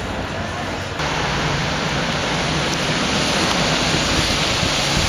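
A tram rolls past nearby.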